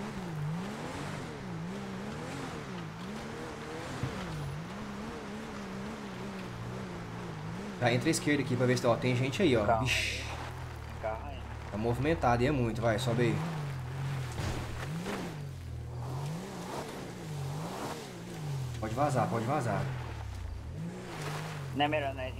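A car engine hums as the car drives.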